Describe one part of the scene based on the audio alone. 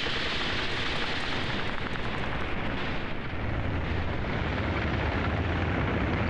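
A tank engine rumbles heavily.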